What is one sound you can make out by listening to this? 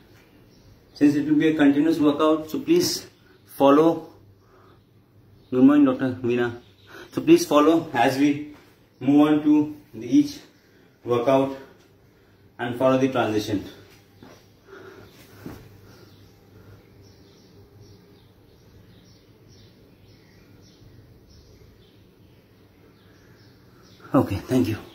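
A man speaks close to the microphone, calmly explaining.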